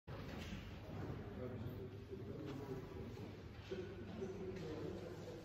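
An older man speaks calmly and close by, in a softly echoing hall.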